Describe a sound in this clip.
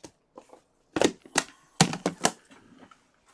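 Metal case latches click open.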